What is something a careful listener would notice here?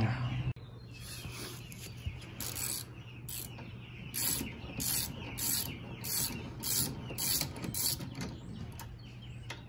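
A ratchet wrench clicks rapidly as it turns a bolt.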